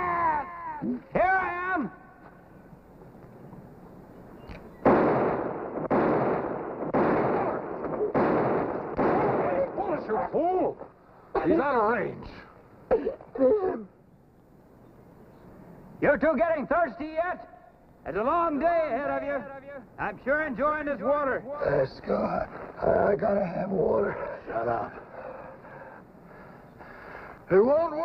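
A man talks loudly and with animation.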